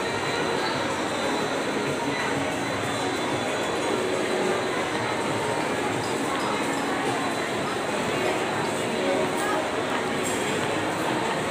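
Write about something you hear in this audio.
A crowd of many voices chatters in a large echoing hall.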